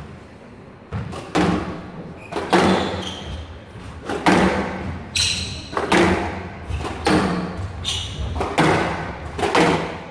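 A squash ball smacks sharply off rackets and walls in a rally, echoing around a hall.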